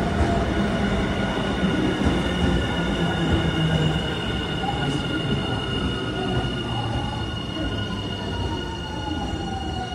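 A train rolls slowly past with a low rumble.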